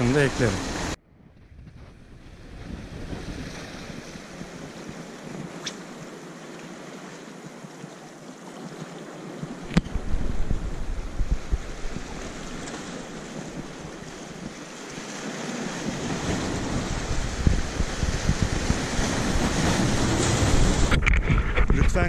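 Waves wash and splash against rocks.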